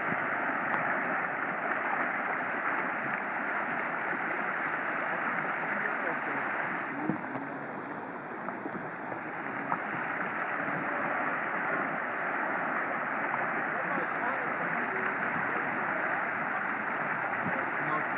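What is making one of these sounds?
Rushing water roars steadily over a weir outdoors.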